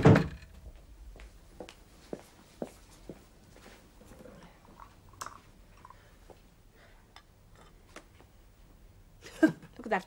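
A teacup clinks against a saucer.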